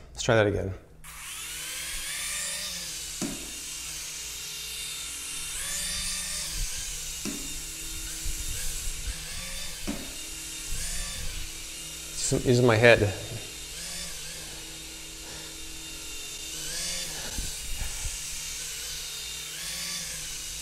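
A small toy drone whirs with a high buzz as it hovers.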